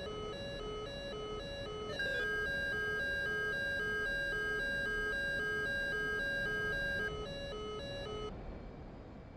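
A cockpit warning tone beeps in quick, even pulses.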